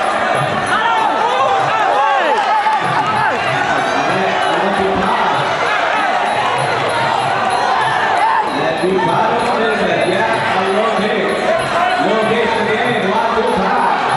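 A crowd cheers and shouts, close and loud.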